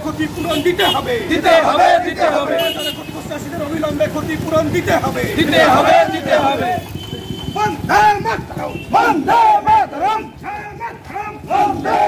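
A man shouts nearby.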